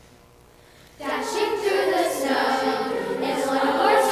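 A large choir of children sings together in an echoing hall.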